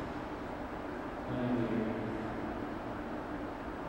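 Skate blades scrape and glide across ice in a large echoing rink.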